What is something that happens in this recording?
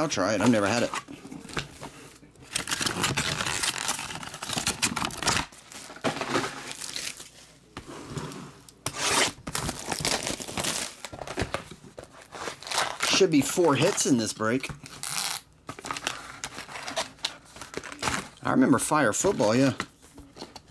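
Cardboard packs slide and tap against a box.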